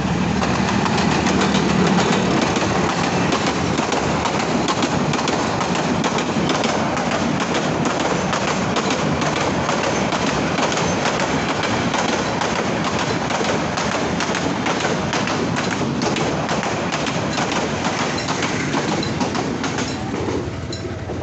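A train rumbles and clatters past close by on the rails.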